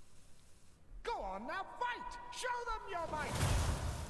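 A young woman talks into a microphone.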